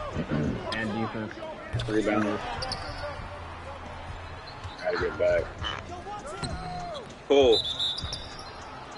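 A crowd murmurs in a large arena.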